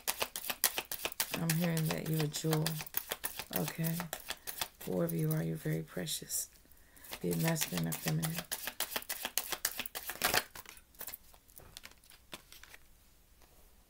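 Plastic wrappers crinkle and rustle.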